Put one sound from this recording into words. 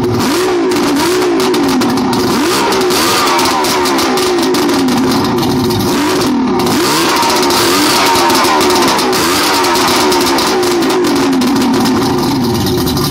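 A V6 outboard motor runs, revving up and down.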